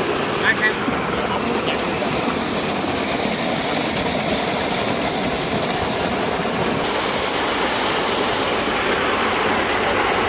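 Thick wet slurry gushes and splatters steadily from a pipe onto mud.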